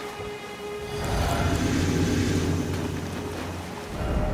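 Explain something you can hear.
A magical summoning sound swells with a low hum and shimmer.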